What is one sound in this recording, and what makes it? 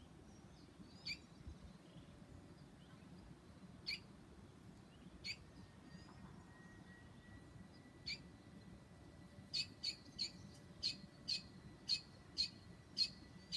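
A young bird gives short, sharp calls, faster and louder toward the end.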